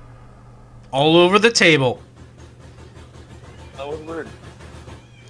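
A young man shouts over an online call.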